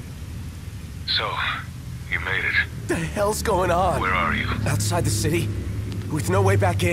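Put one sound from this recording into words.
A young man speaks tensely into a phone.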